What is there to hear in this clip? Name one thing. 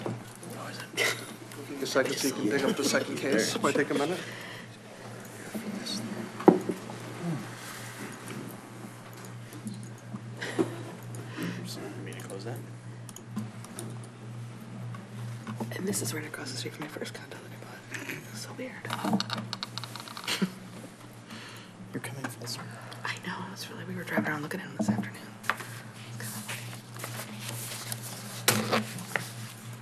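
Several adults murmur and talk at once in a room.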